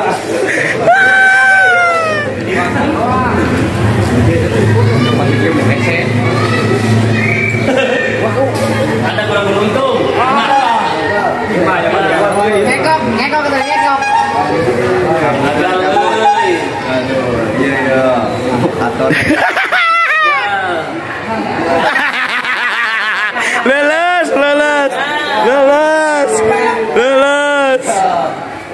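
Several young men talk and laugh together nearby with animation.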